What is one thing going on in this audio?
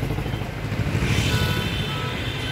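A motorbike passes close by.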